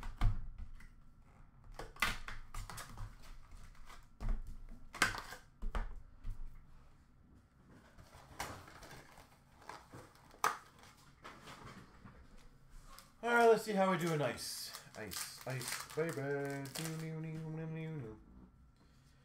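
Plastic card wrappers rustle and crinkle.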